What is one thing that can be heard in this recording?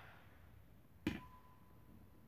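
A metal gas canister is set down on a concrete floor.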